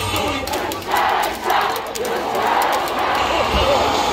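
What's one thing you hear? Fans clap in rhythm.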